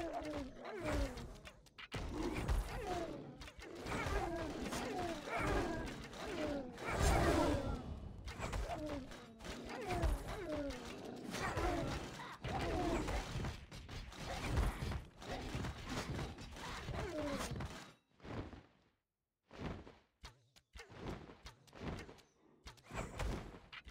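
Weapons clash and strike as small fighters battle.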